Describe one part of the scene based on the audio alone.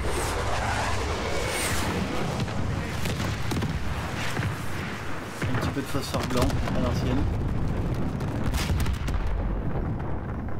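Rapid gunfire crackles loudly.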